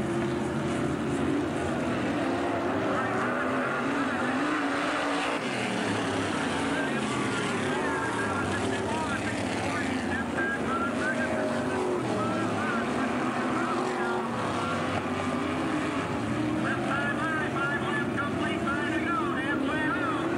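Racing car engines roar and whine around a track.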